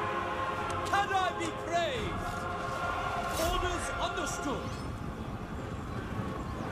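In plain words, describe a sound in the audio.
A large army marches with a low, rumbling tramp of many feet.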